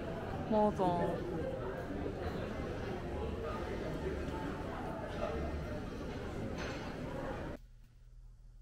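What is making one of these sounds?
Water trickles in a fountain.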